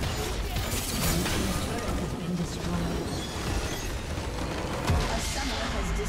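Magic blasts crackle and burst in a busy game battle.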